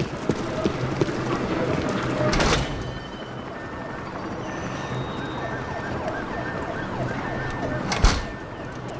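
Footsteps fall on a hard floor.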